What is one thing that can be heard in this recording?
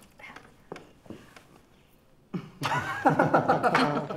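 A woman laughs heartily.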